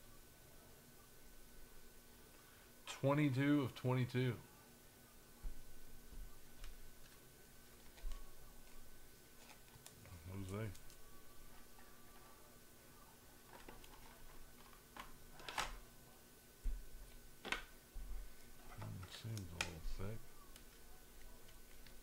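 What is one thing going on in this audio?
Trading cards and plastic card holders click and rustle in hands.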